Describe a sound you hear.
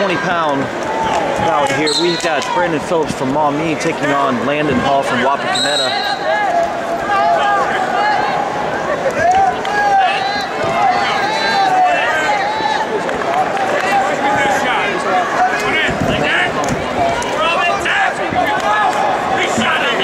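A large crowd murmurs and shouts in a big echoing arena.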